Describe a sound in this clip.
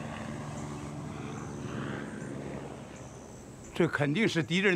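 A propeller plane drones overhead.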